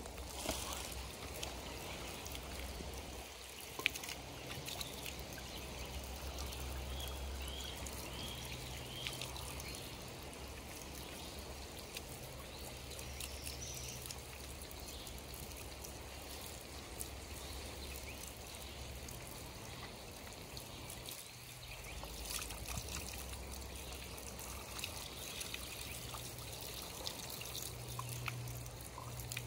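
Water runs from a spout and splashes onto the ground.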